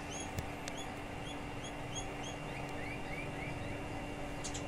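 Small birds chirp close by in short, repeated rising notes.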